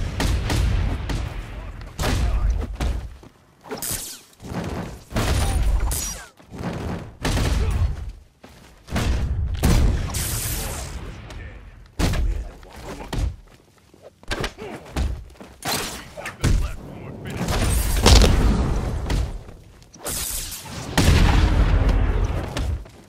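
Punches and kicks thud hard against bodies in quick bursts.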